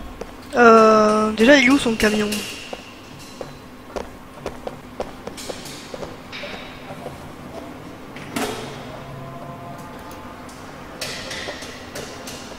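Footsteps fall on a hard floor.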